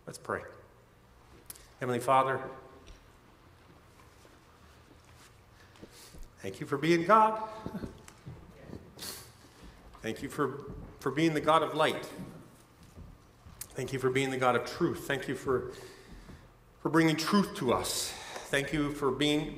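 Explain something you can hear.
A man speaks calmly into a microphone, heard through a loudspeaker in a large hall, with pauses between phrases.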